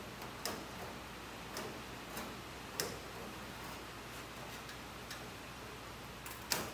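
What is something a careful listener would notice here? Metal tools clink and tap against a sheet metal table.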